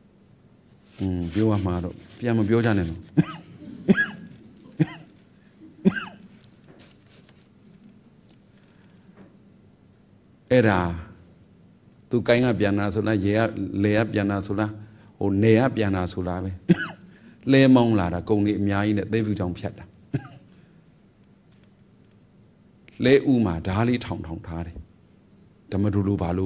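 A man speaks calmly and slowly, close to a microphone, with pauses.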